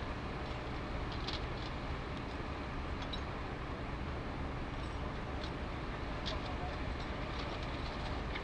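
Metal gear clinks and knocks as rescue workers handle a ladder.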